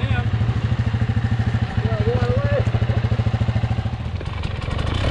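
A dirt bike engine idles with a fast, steady putter close by.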